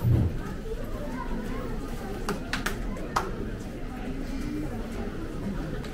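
People murmur and talk quietly nearby, outdoors.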